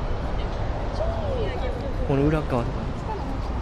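Young women chat nearby.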